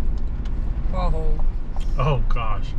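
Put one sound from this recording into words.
A man speaks briefly inside a car.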